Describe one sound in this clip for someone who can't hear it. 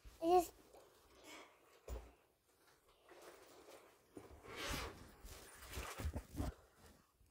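A young boy talks close to a microphone.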